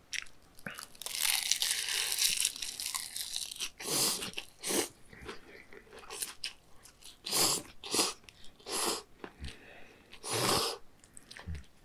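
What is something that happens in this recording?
A man slurps noodles loudly, close up.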